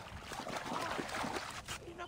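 Water splashes as someone wades through it.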